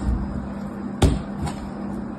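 A bar of soap is set down on other bars with a soft knock.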